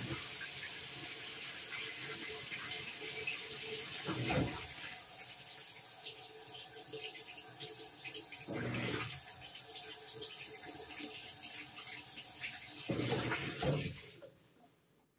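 A top-load washing machine whirs and swishes as its drum turns.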